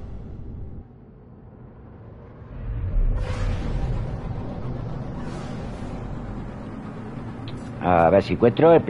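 A spacecraft engine roars with a low steady rumble.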